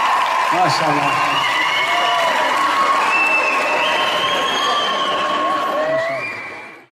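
A live band plays guitars and drums.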